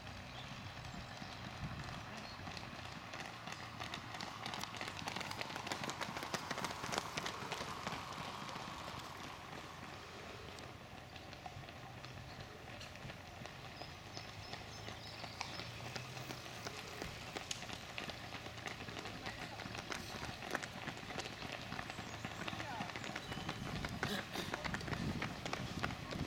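Running shoes patter on pavement close by.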